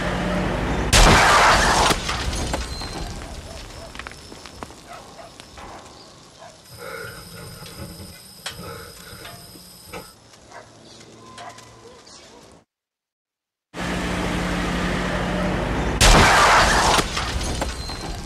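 A car crashes loudly into another car.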